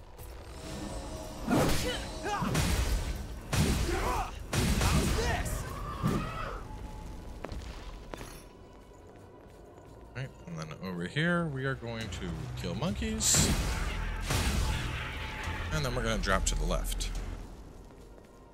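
A large sword swings and strikes with heavy impacts.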